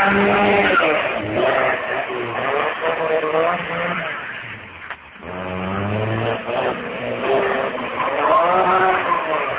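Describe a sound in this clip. Tyres squeal on asphalt as a car slides.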